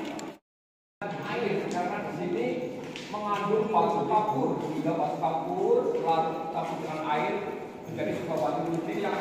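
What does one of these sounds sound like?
Men and women talk loudly close by.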